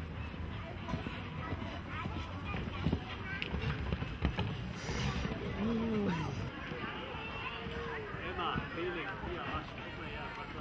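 Horse hooves thud on soft sand at a gallop.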